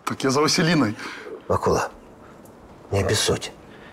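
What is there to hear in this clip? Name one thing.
A middle-aged man speaks loudly and urgently nearby.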